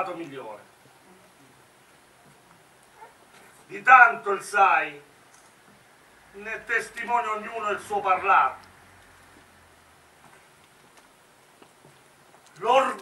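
A man declaims loudly in short bursts with pauses.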